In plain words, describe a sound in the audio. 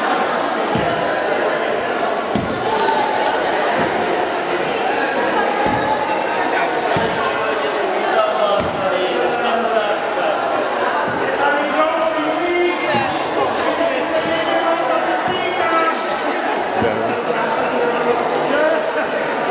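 A crowd of children and adults chatter and call out in a large echoing hall.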